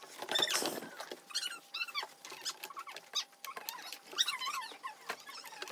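A hard plastic part clicks and rattles as hands handle it.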